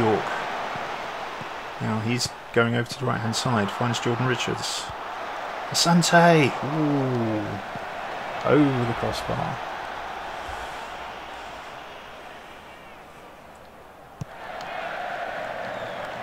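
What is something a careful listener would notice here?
A stadium crowd murmurs and roars in the distance.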